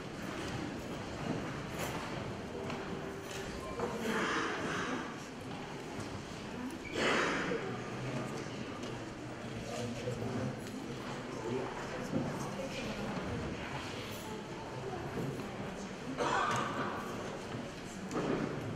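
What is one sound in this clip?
A man sings into a microphone through loudspeakers in a large echoing hall.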